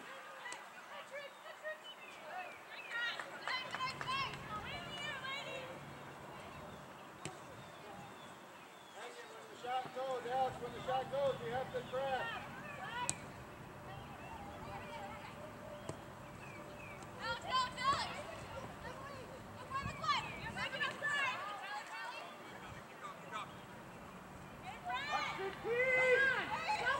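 Young women shout and call out to each other at a distance, outdoors.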